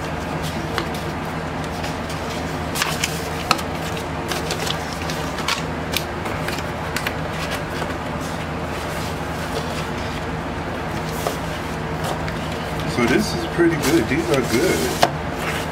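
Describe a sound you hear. Paper sleeves and record jackets rustle and slide as they are handled.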